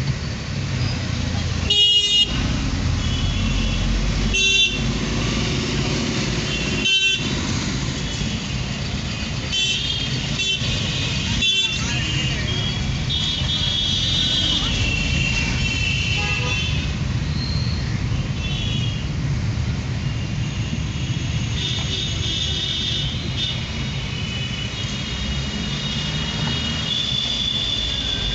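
Traffic rumbles on a busy street outside.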